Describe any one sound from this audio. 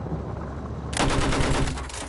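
A heavy machine gun fires a rapid, loud burst.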